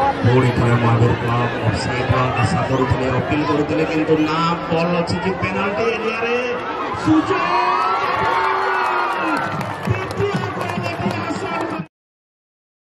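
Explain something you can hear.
A large crowd outdoors chatters and cheers.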